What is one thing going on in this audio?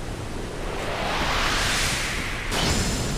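A sword whooshes through the air.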